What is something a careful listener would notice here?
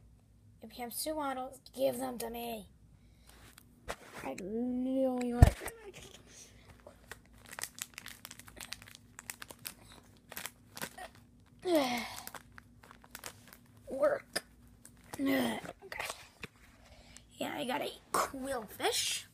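Plastic card sleeves rustle and crinkle close by.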